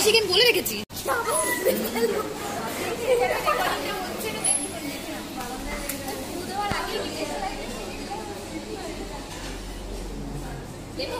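Several young women laugh and chatter nearby.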